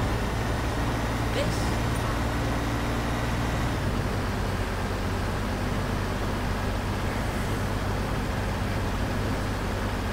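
A heavy truck engine drones steadily as it drives along.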